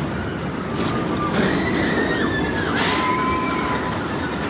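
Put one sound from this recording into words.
Riders on a roller coaster scream.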